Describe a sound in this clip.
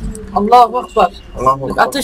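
A laser beam hums steadily.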